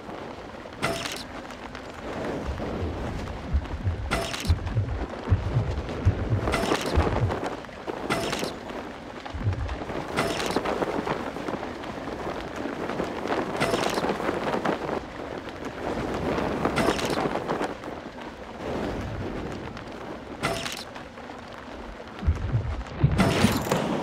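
Wind rushes loudly past a flier in a steady roar that swells and dips.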